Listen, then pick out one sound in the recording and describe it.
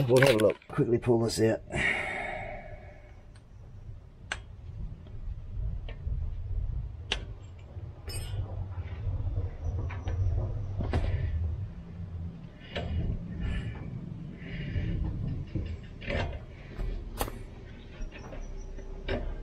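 Metal parts click and clank close by.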